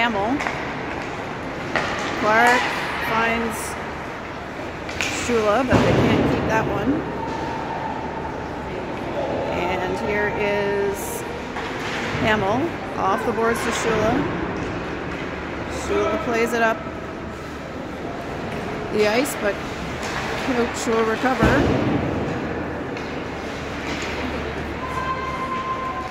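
Spectators cheer and shout in an echoing rink.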